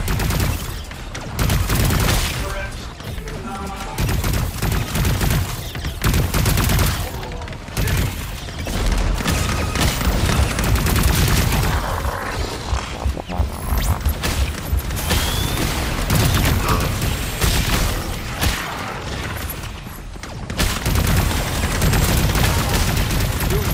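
Energy guns fire rapid blasts in a video game.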